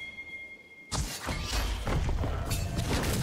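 Spell and combat sound effects burst out in a clash.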